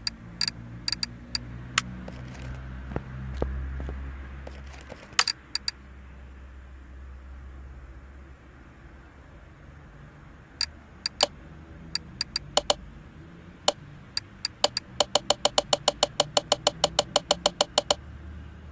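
Short menu clicks tick, then rattle off in a quick even run.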